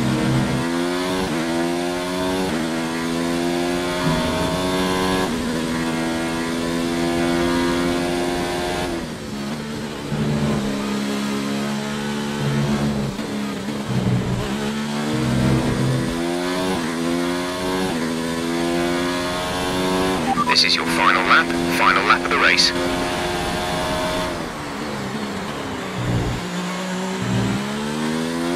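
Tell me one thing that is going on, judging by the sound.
A racing car engine screams at high revs, rising through the gears and dropping as it brakes.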